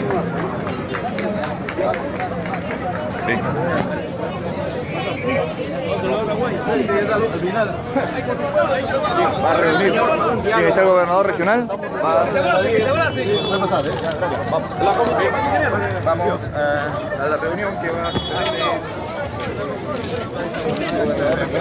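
A crowd of men and women talk and shout all around, close by.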